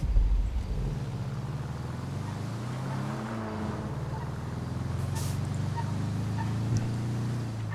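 A van engine hums steadily as the van drives downhill.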